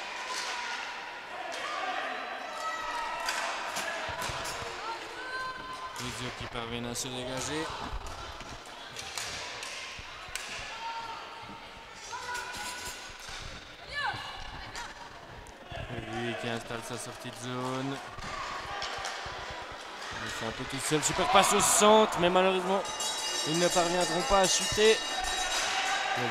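Skates roll and scrape across a hard floor in a large echoing hall.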